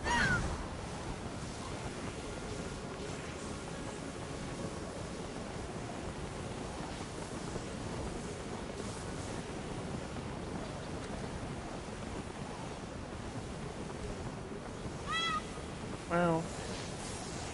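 A large flying creature screeches in short cries.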